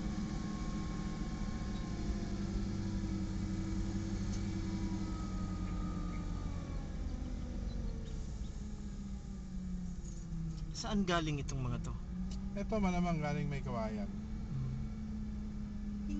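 A truck engine rumbles steadily close by.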